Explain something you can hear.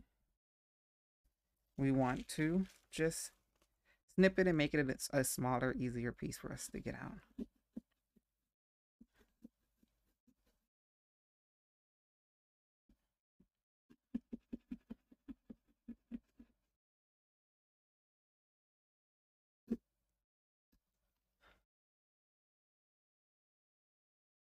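Plastic wrap crinkles and rustles under hands.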